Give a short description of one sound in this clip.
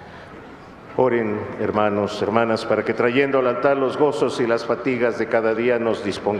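A man chants through a microphone, echoing in a large hall.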